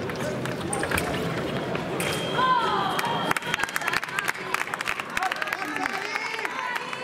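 Fencing blades clash and click rapidly.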